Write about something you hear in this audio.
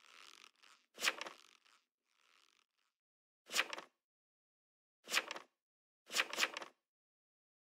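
Short electronic blips sound now and then as messages pop up.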